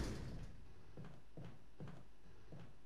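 Footsteps walk across a floor.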